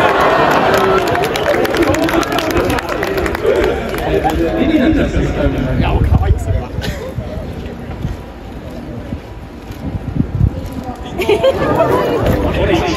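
A young girl speaks through a microphone over loudspeakers.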